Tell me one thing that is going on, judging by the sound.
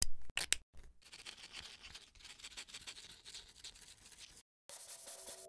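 A felt pen scratches across paper.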